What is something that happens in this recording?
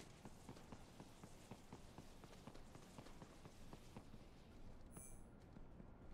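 Heavy metallic footsteps clank quickly on pavement.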